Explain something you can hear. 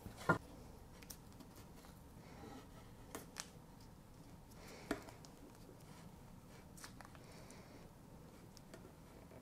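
Adhesive tape crinkles and tears as hands wrap it around a wooden handle.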